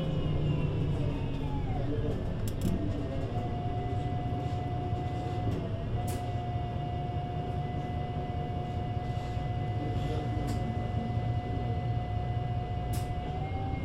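A bus engine idles close by with a steady low hum and a high whine.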